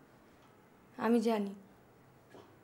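A young woman speaks briefly in a low, quiet voice, close by.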